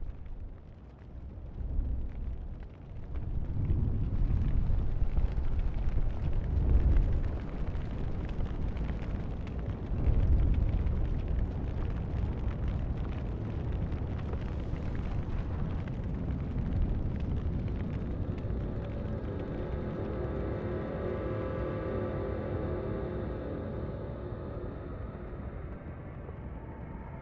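Flames roar and crackle as a tree burns.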